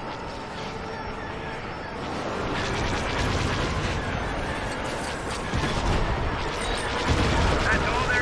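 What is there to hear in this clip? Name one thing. Laser blasts zap and fire rapidly.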